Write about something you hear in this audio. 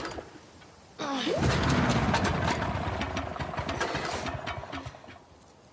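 A generator engine sputters and chugs, then dies out.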